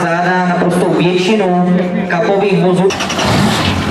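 Men cheer and sing loudly outdoors.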